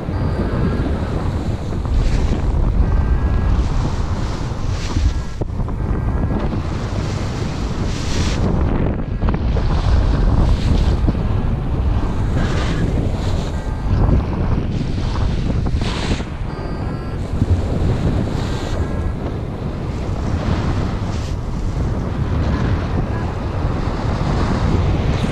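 Strong wind rushes and buffets steadily.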